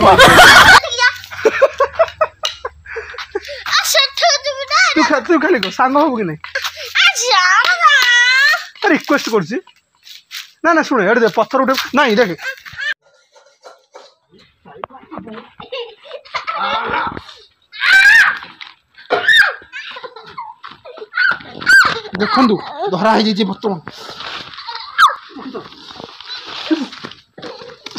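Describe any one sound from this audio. A small boy talks and laughs.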